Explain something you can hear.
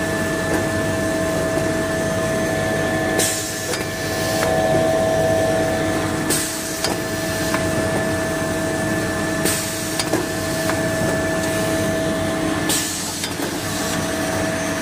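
Rolls of paper thud softly as they move along a conveyor.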